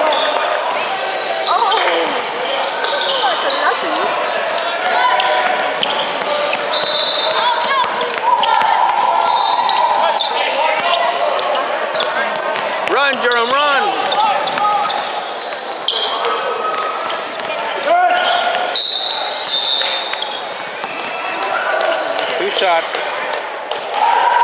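Young players and spectators shout and chatter in a large echoing hall.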